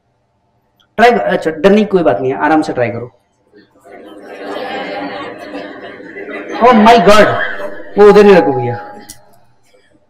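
A man speaks calmly to an audience.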